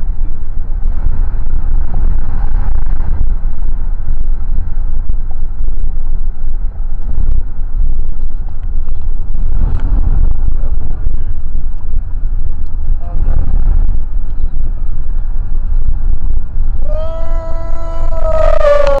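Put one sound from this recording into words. A car's engine and tyres rumble low and steady from inside the car.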